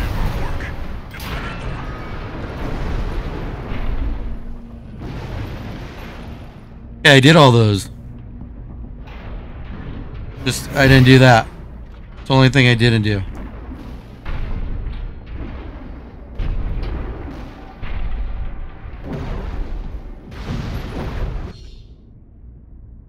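Thrusters of a game's robot rumble and roar.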